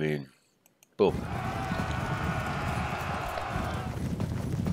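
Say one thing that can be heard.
Horses thunder forward in a galloping charge.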